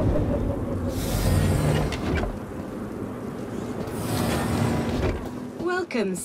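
A heavy mechanical door rumbles and whirs as it slides open.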